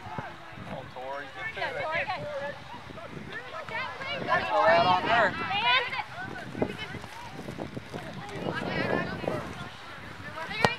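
Young girls shout and call out across an open field.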